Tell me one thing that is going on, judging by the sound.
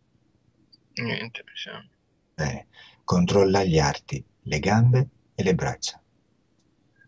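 A man speaks with animation over an online call.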